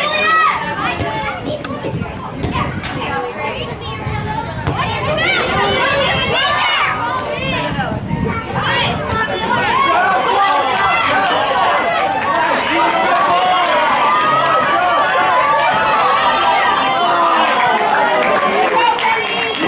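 A crowd of spectators shouts and cheers close by, outdoors.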